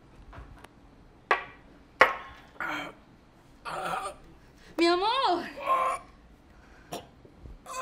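A middle-aged man speaks and groans in a strained voice.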